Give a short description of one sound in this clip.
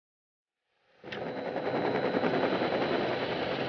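A motorboat engine drones as the boat speeds across water.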